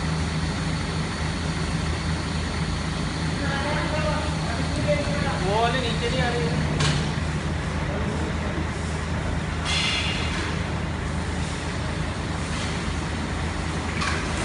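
A steady low machine hum fills a large echoing hall.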